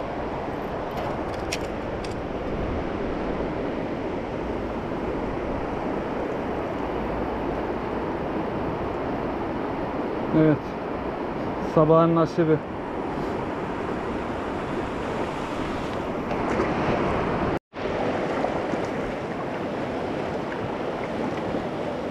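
A fast river rushes and roars steadily close by.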